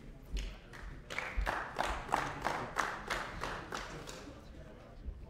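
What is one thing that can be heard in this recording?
People in a large hall clap briefly.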